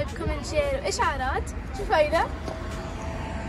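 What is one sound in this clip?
A young woman speaks playfully close by.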